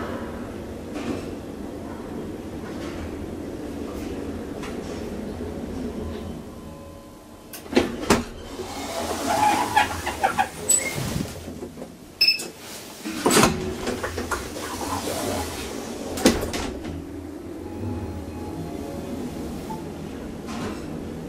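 A traction elevator car hums as it travels.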